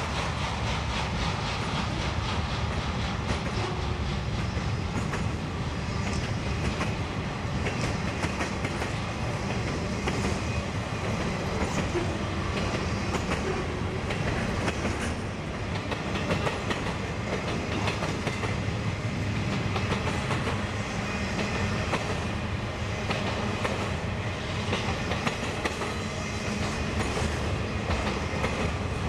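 Train wheels clatter and squeal over the rail joints.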